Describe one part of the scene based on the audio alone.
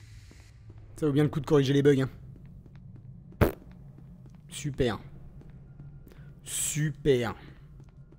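A young man speaks close to a microphone, reacting with animation.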